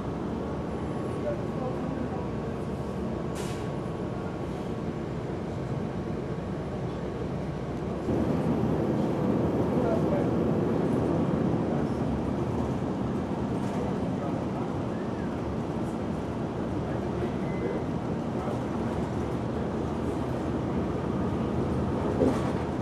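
A vehicle's engine rumbles steadily from inside as it drives along.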